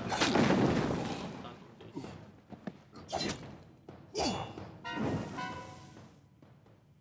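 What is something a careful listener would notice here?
Fiery magic blasts roar and crackle.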